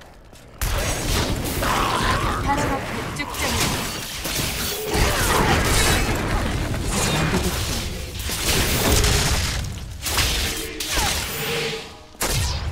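Fiery spells burst and roar in quick succession.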